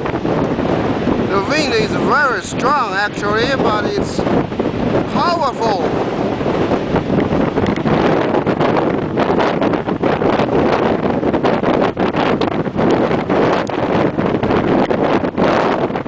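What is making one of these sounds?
Rough sea waves crash and surge against rocks.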